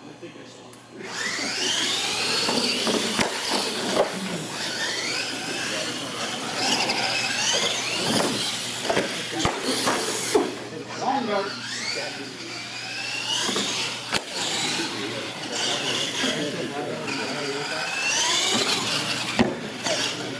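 Small electric motors whine and rev up and down as toy trucks race.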